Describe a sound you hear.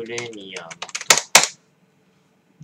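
Fingers type quickly on a computer keyboard.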